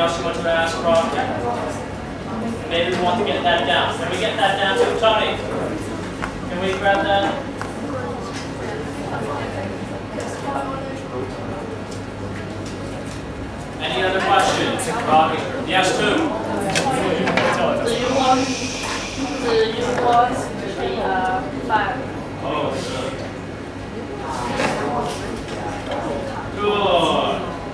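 A young man speaks with animation to a room, his voice echoing slightly.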